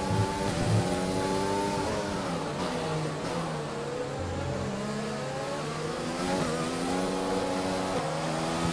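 A racing car engine screams, its pitch dropping as it slows for a corner and climbing again as it speeds up.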